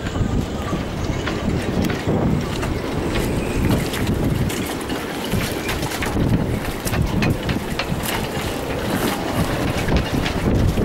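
Choppy water slaps against boat hulls.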